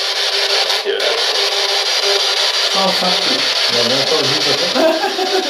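An electronic device hisses with loud, steady static.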